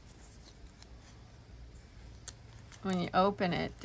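Paper rustles softly as a stiff page is turned.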